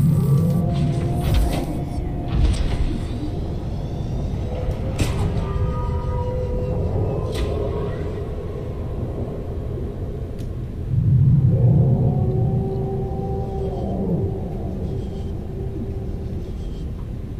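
A machine's engine hums steadily underwater.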